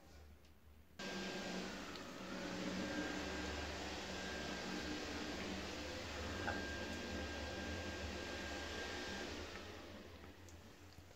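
Water hisses steadily as a toilet cistern refills.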